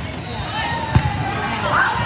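A volleyball thuds as a player hits it.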